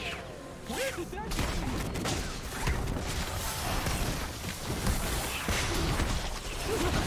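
Magic blasts and hits crackle and whoosh in a fast game battle.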